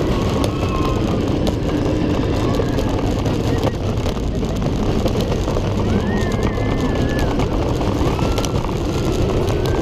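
A ride car rumbles and clatters along its track.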